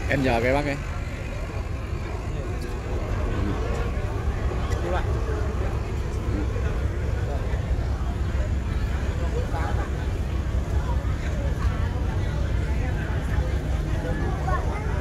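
A ferry's engine rumbles low and steady.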